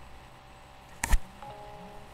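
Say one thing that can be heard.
A hand bumps against the microphone with a sharp knock.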